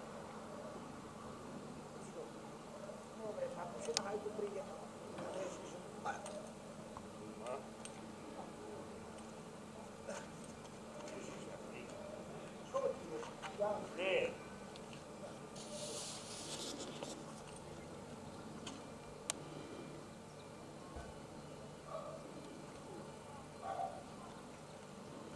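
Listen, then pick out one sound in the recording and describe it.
Two men talk with each other outdoors, heard from a distance.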